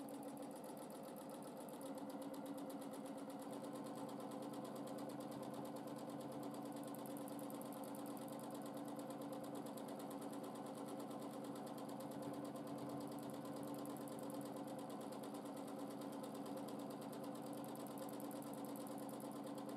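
A sewing machine stitches rapidly with a steady, fast whirring hum.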